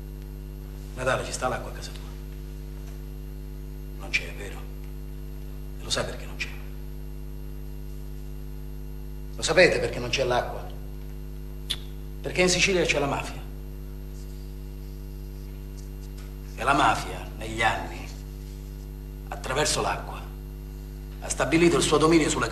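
A man speaks quietly and calmly, close by.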